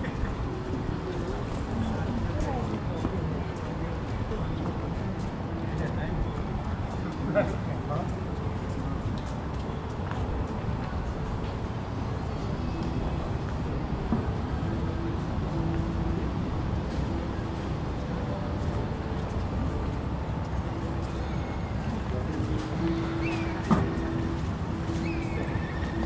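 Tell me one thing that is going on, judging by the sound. Footsteps scuff on a stone pavement outdoors.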